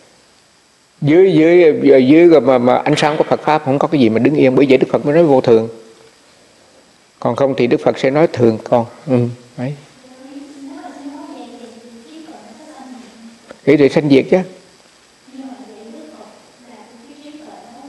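An elderly man speaks calmly and warmly, close to a microphone.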